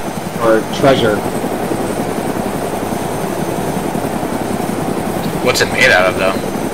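A helicopter's rotor thumps steadily as it flies.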